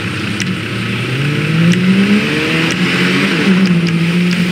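A car engine hums and revs up as the vehicle pulls away.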